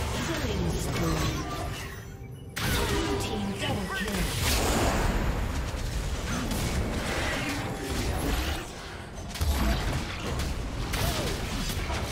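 Magic blasts and sword strikes crash and whoosh in a fast fight.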